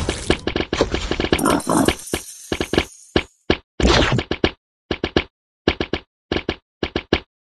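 Short electronic game sounds pop in quick bursts.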